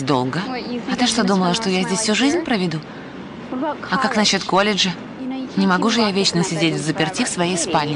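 A young woman answers with irritation.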